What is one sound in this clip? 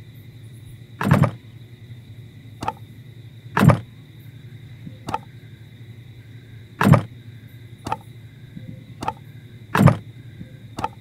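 Wooden planks knock into place with hollow thuds.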